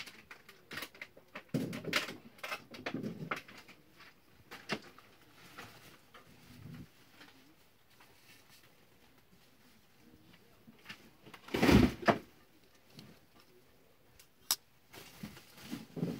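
A folding knife blade clicks as it opens and locks.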